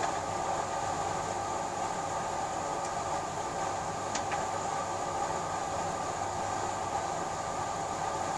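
Papers rustle softly as they are handled.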